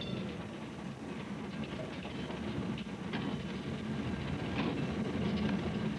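A train engine drones steadily from inside the cab.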